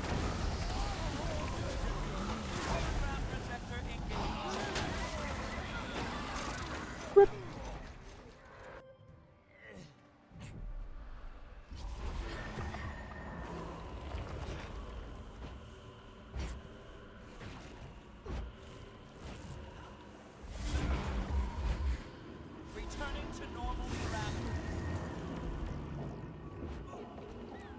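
Magic blasts and hits crackle and boom in quick bursts.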